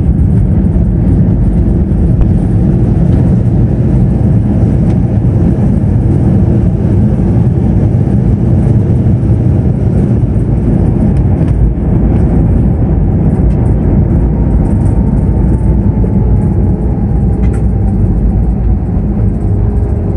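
Jet engines roar loudly as an airliner rolls down a runway.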